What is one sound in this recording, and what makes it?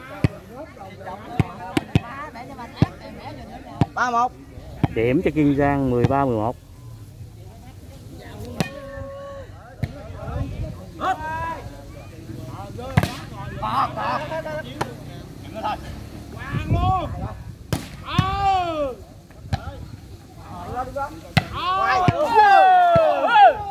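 A crowd of men shout and cheer outdoors.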